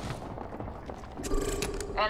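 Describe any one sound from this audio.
A weapon is picked up with a short metallic clack.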